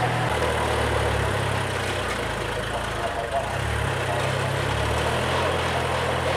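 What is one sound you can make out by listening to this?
A tractor engine runs with a steady low rumble.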